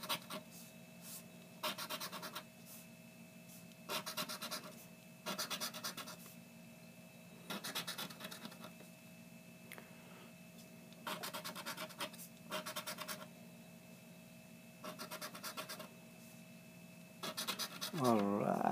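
A scratch card is scraped in quick rasping bursts.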